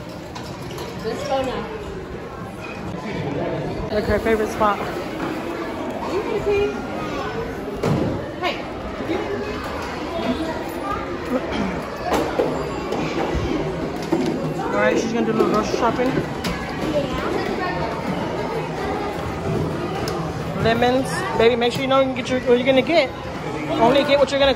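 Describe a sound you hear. Children chatter and call out in a busy, echoing indoor space.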